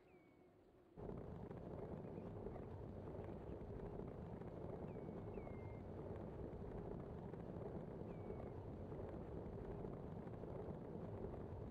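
Bicycle tyres rumble loudly over cobblestones.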